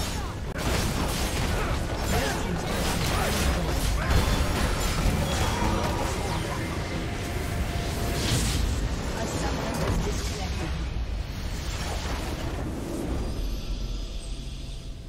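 Clashing blows, blasts and spell effects of a battle ring out in quick succession.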